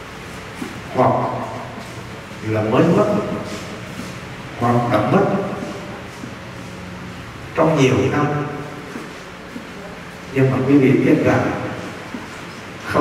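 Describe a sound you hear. A middle-aged man speaks calmly into a microphone, in short phrases with pauses.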